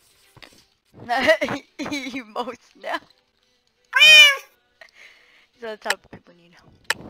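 A boy speaks excitedly and laughs close to a microphone.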